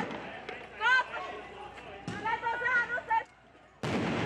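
Men shout loudly in the street.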